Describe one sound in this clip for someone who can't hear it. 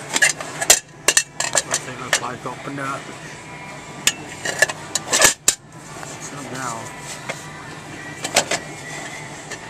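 Metal pot parts clink and clatter as they are handled.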